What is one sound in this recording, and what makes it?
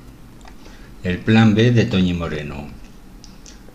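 A woman speaks softly, close to a microphone.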